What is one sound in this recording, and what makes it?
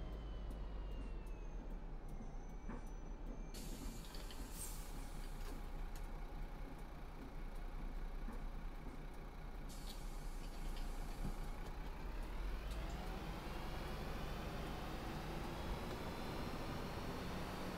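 A bus engine idles, then revs and rises in pitch as the bus pulls away.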